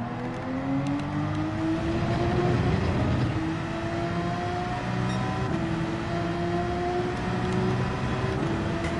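A racing car engine revs high, rising in pitch and dropping with each gear change.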